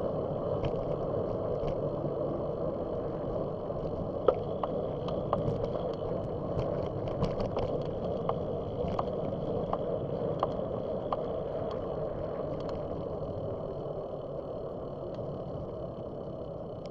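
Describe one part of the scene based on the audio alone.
A vehicle rolls steadily along a paved road with a low rumble.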